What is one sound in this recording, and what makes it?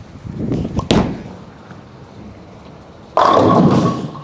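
A bowling ball rumbles down the lane.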